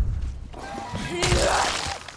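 A blade swooshes through the air.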